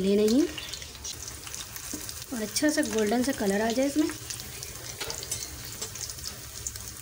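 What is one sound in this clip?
Slices of food sizzle and crackle as they fry in hot oil.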